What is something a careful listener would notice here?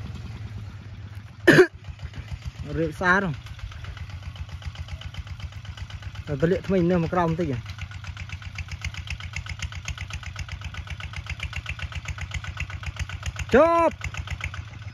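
A small farm engine putters steadily at a distance.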